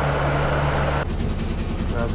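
A bus engine idles in traffic.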